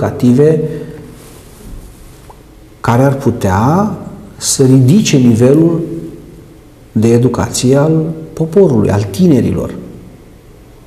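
A middle-aged man speaks calmly and steadily into a microphone.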